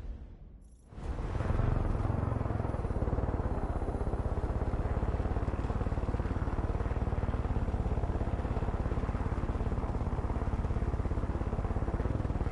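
Wind rushes past a helicopter cockpit.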